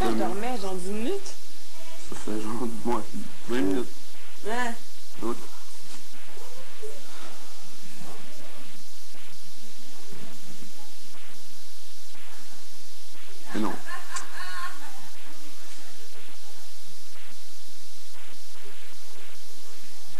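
A razor scrapes softly across a man's scalp.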